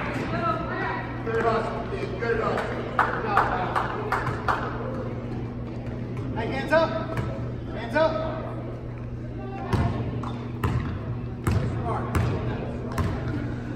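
Spectators chatter in an echoing hall.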